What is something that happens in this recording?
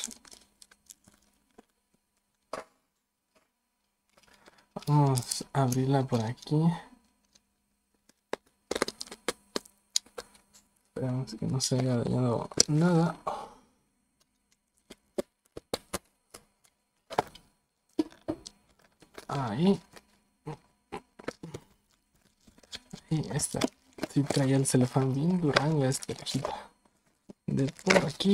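Plastic wrapping crinkles and rustles in someone's hands.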